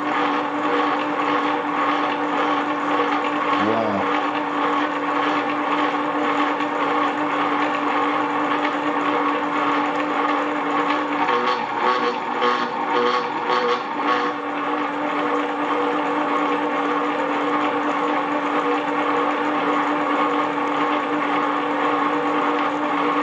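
A drill bit grinds and scrapes through metal.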